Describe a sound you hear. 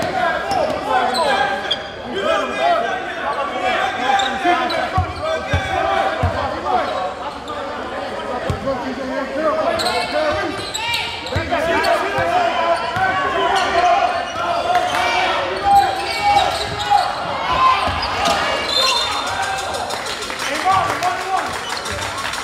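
A crowd chatters and cheers loudly in an echoing gym.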